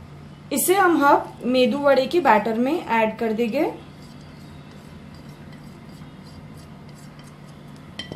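Chopped herbs slide and patter softly from a plate into a bowl.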